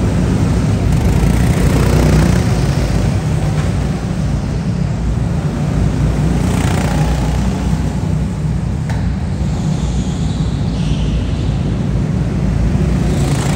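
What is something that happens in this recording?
Go-kart engines buzz and whine around an indoor track.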